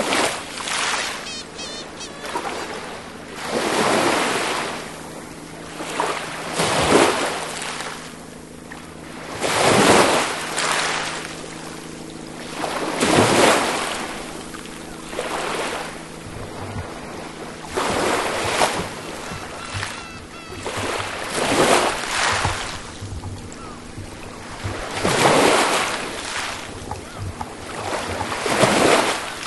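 Small waves wash gently onto a pebbly shore in a slow, even rhythm.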